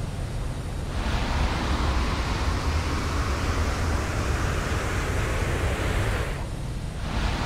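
A jetpack roars with a steady rushing thrust.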